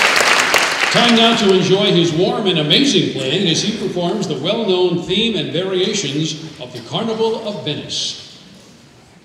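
A man speaks through a microphone over loudspeakers in a large hall.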